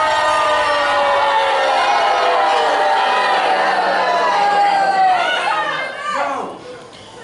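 A group of voices sings together, then fades out.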